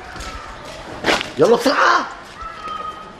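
A man shouts loudly and suddenly.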